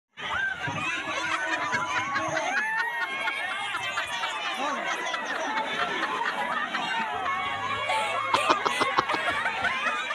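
A crowd of people chatter and shout excitedly all at once.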